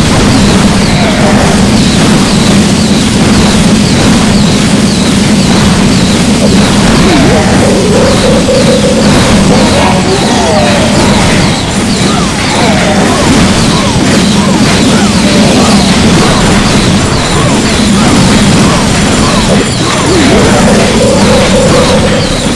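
Game explosions and battle effects crackle and thump.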